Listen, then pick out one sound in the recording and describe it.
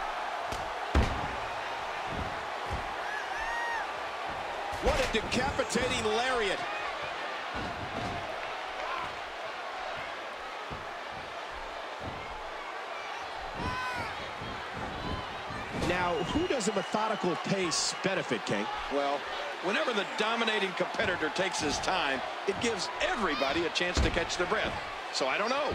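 Bodies thud heavily onto a wrestling mat.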